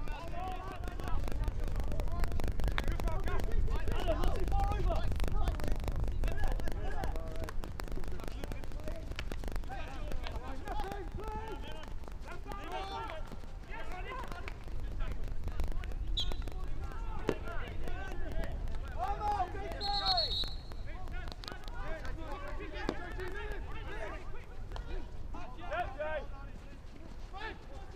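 Hockey sticks strike a ball with sharp clacks.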